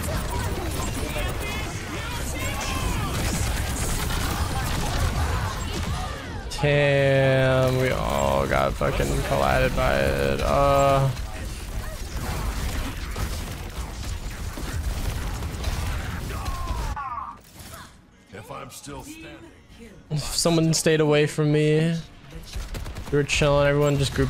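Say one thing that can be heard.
Futuristic guns fire in rapid bursts.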